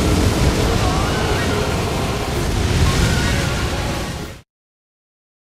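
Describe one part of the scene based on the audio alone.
Rubble crashes down in a thunderous rumble.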